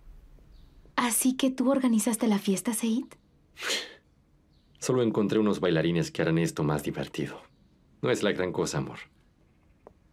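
A young woman speaks softly nearby.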